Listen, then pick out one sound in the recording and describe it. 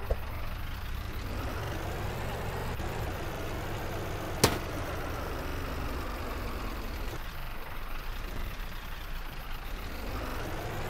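A van engine revs up and drones as the van drives.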